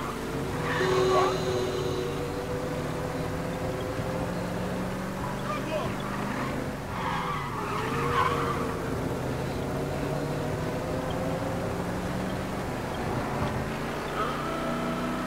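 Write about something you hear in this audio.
Car tyres rumble over a road.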